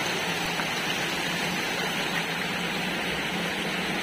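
Hands splash in shallow water.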